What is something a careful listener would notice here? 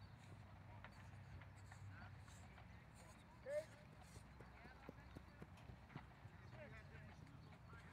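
Footsteps thud quickly on artificial turf as a young man sprints.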